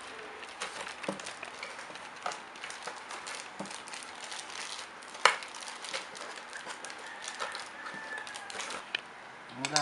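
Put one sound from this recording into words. Paper and cardboard rustle and crinkle close by.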